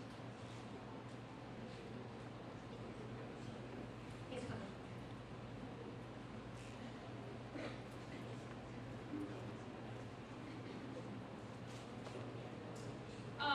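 An elderly woman speaks to a crowd in a large echoing hall.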